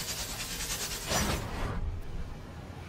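A magical energy blast whooshes and crackles loudly.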